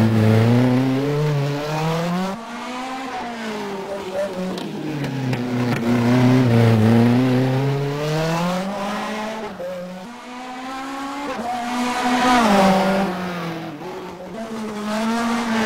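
A racing car engine whines loudly, rising and falling in pitch as it speeds up and shifts gears.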